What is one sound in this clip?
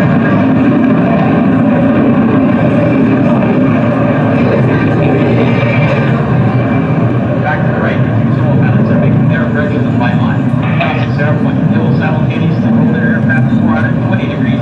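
A jet engine roars steadily as a fighter plane flies low.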